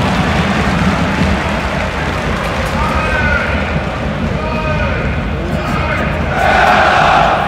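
A large crowd of football supporters roars in a roofed stadium.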